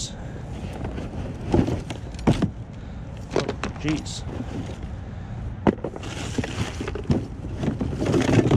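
Plastic bags rustle and crinkle as gloved hands dig through a bin.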